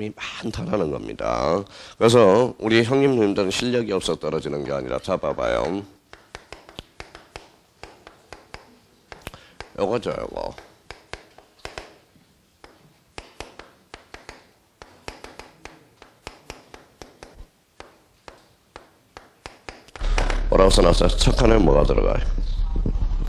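A middle-aged man lectures calmly through a microphone.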